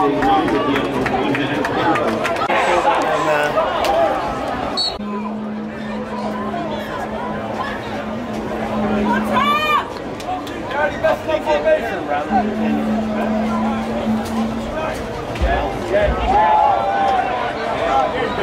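Young men on a field shout to each other.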